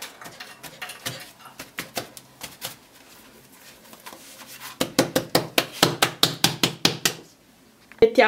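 Hands pat and slap soft dough on a floured board.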